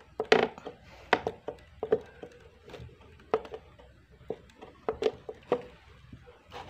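A screwdriver drives a screw into wood with sharp clicks and creaks.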